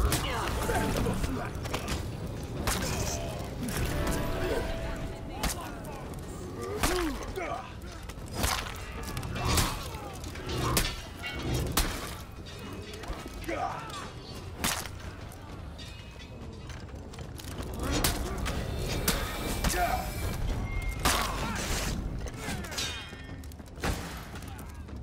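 Swords clash and clang in a melee battle.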